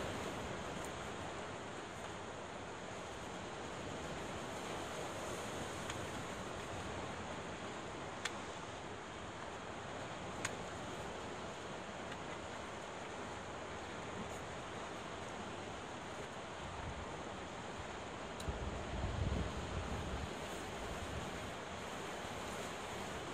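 Waves crash and surge against rocks.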